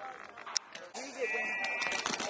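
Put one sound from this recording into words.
A paintball marker fires in rapid pops.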